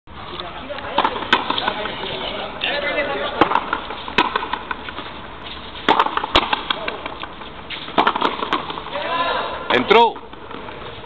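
A ball smacks sharply against a wall, echoing outdoors.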